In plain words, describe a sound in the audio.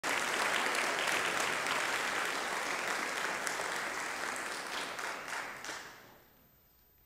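An audience applauds in a large echoing hall, then the applause dies away.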